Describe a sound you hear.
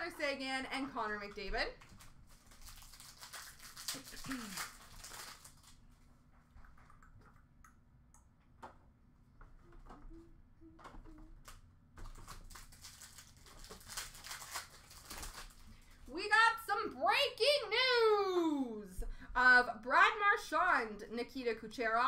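Foil card packs rustle and crinkle as hands sort them.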